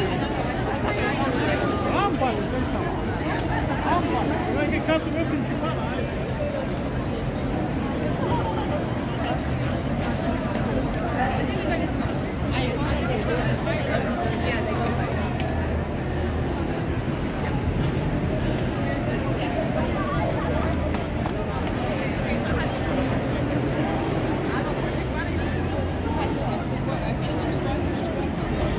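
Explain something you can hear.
A busy crowd of men and women chatters all around outdoors.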